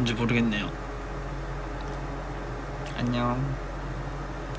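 A young man speaks briefly and softly into a close microphone.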